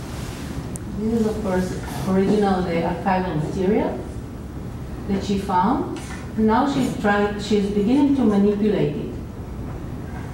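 A man speaks through a loudspeaker in a room.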